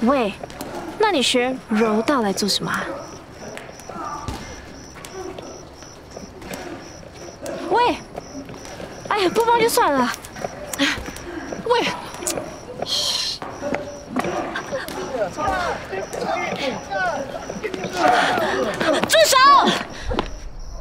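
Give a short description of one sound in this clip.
A young woman speaks emotionally nearby.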